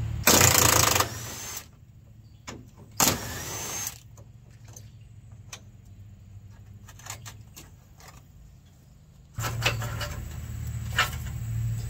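Metal tools clink and scrape against an engine.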